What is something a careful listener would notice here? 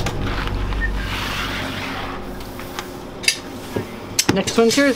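A hand rubs across a metal surface with a soft swishing.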